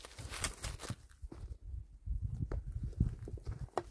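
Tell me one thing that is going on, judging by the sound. Stones knock and scrape together as they are moved.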